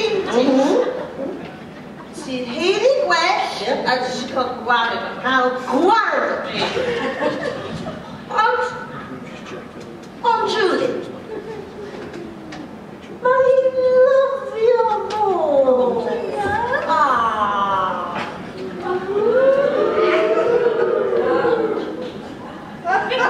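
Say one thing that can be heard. Women speak in turn through microphones in a large echoing hall.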